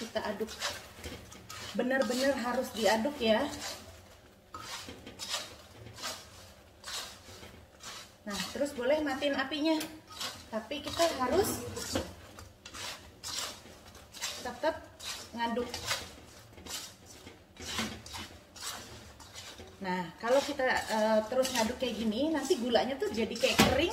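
Potatoes sizzle in hot oil.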